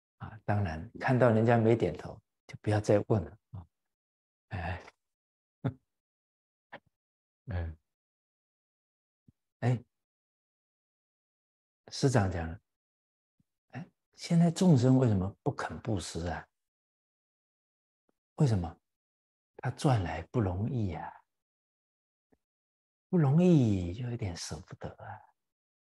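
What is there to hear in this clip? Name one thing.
A middle-aged man laughs softly.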